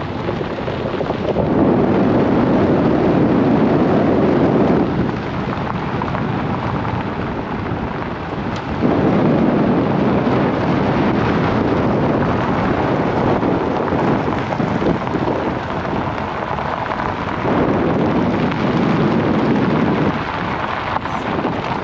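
Wind gusts loudly across open ground, rising and falling in strong bursts.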